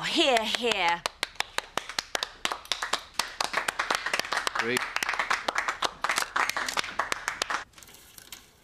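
A crowd of people claps and applauds.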